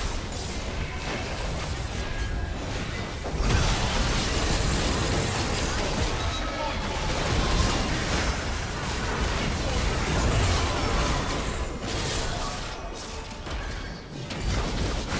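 Magic blasts and weapon hits crash and whoosh in a busy fight.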